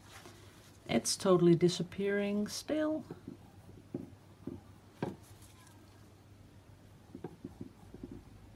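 A wooden stick softly dabs and scrapes at wet paint.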